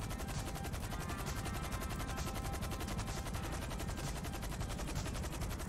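Helicopter rotor blades chop rapidly and steadily overhead.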